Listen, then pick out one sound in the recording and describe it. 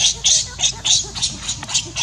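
A baby monkey squeals nearby.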